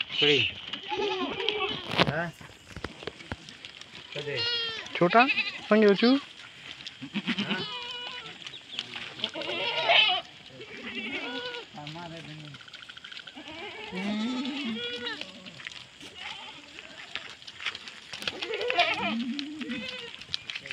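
Goats bleat loudly and often, close by and all around.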